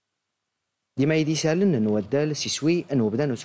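A young man speaks clearly and steadily into a microphone, reading out.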